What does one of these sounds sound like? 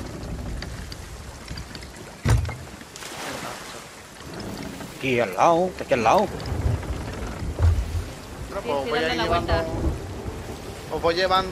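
Stormy sea waves rush and crash against a wooden ship.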